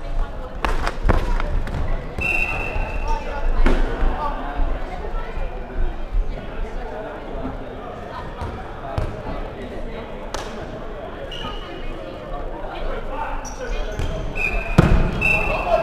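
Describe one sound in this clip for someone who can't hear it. A ball thuds on a wooden floor and off players in a large echoing hall.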